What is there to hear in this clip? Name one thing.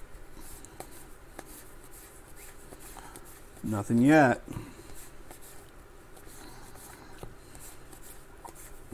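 Trading cards rustle and slide as they are flipped through by hand.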